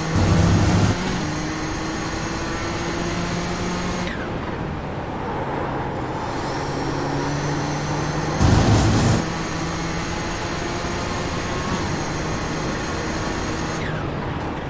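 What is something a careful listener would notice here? A racing car engine roars steadily, shifting up and down through the gears.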